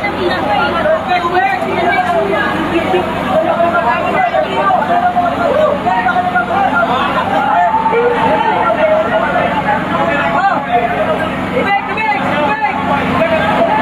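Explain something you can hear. A crowd of men shout and call out excitedly nearby.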